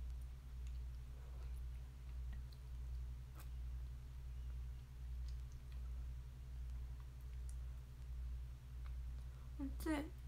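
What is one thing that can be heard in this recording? A young woman slurps noodles close by.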